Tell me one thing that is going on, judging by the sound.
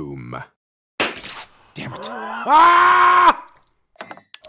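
A man laughs loudly close by, with a wailing cry.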